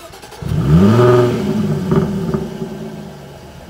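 A sports car engine starts with a loud rising roar.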